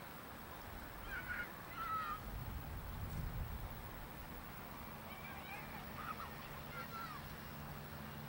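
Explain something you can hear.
Ducks call faintly from the water.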